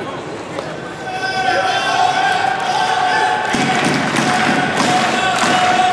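Trumpets and horns play a tune in the stands.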